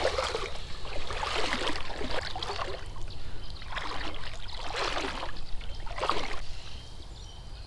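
Boots slosh and splash through shallow water.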